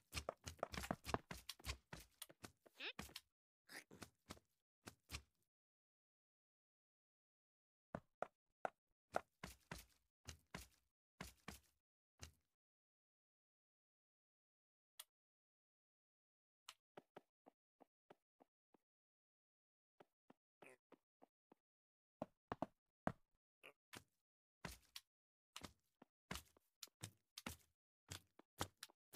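Blocks are set down with short, soft tapping clicks, in quick bursts.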